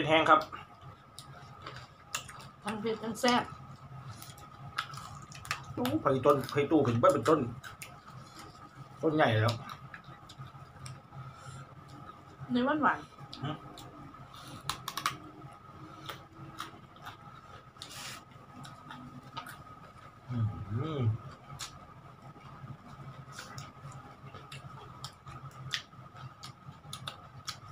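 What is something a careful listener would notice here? Crunchy bites and chewing sound close by.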